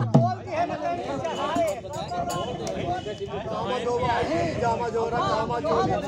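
Hand drums are beaten in rhythm.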